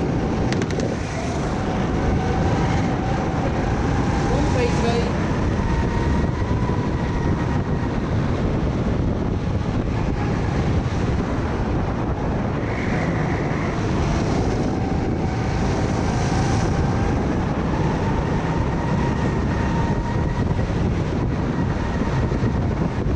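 Other go-kart engines whine nearby.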